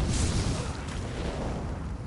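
Electric sparks crackle and zap.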